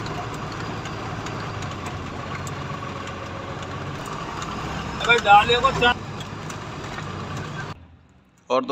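A vehicle engine rumbles while driving along a dirt road.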